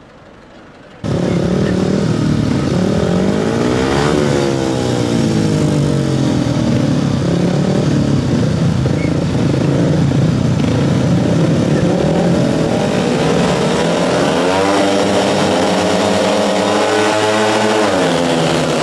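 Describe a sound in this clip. Several motorcycle engines rev loudly, their pitch rising and falling.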